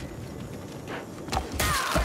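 A sword clangs against armour.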